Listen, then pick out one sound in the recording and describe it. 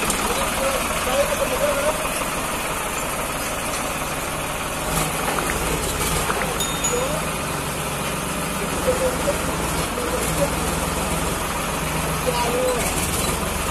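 A man calls out loudly from a short distance.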